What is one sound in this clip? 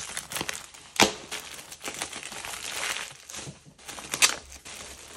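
Plastic wrapping crackles as it is pulled open.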